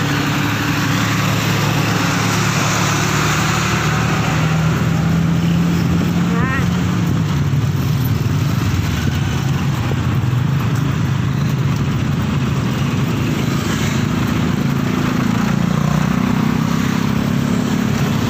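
Traffic rumbles steadily nearby on a busy road.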